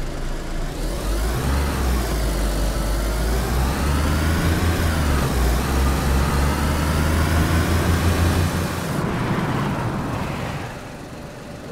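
A vehicle engine roars loudly and steadily, rising and falling in pitch.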